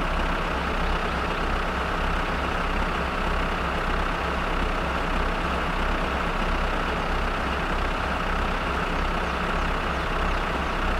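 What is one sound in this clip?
A tractor engine idles with a steady, low chugging rumble.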